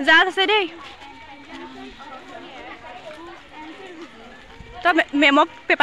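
Women in a walking group chatter quietly in the background.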